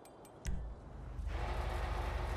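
A metal roller door rattles open.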